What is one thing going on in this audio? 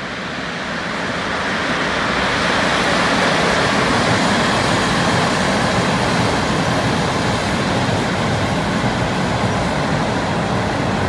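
An electric locomotive hauling freight wagons rumbles past on the rails, growing louder.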